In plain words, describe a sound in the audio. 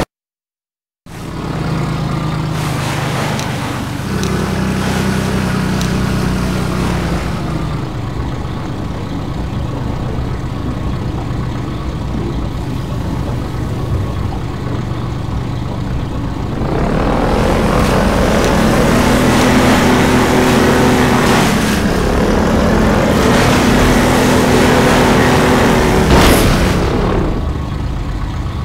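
An airboat engine drones steadily, echoing in a tunnel.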